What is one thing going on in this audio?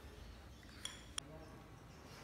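A spoon clinks against a bowl.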